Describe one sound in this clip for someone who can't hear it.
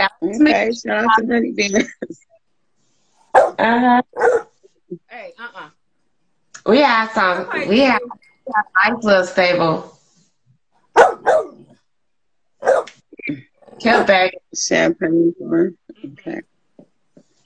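Several women talk and laugh with animation over an online call.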